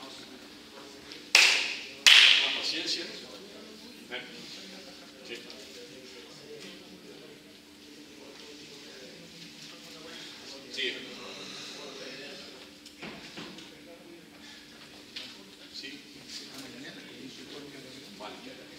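Shoes tap and squeak on a hard floor in an echoing hall.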